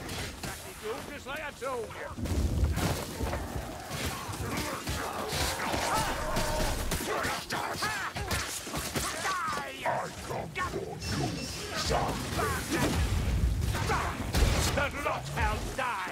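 Creatures shriek and snarl while attacking.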